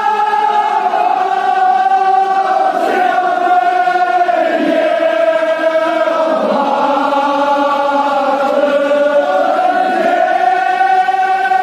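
A crowd of men chants loudly together in an echoing hall.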